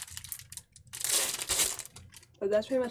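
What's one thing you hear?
Paper rustles in a person's hands.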